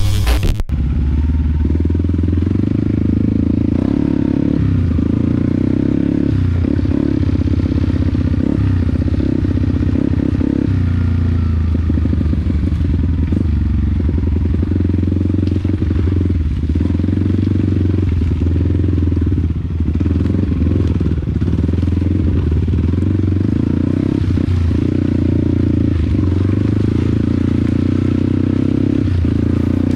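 A dirt bike engine drones close by, rising and falling as the rider works the throttle.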